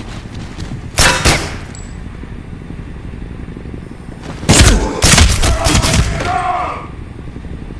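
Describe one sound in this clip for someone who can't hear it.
A pistol fires several shots.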